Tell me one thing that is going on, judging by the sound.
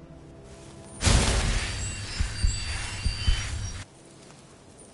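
A magic spell bursts out with a loud crackling roar.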